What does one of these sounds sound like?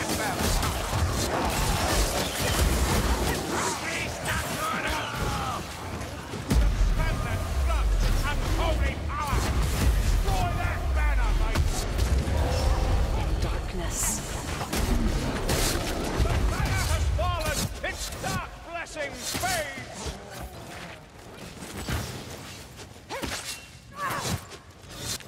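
Blades slash and thud into bodies in a fierce fight.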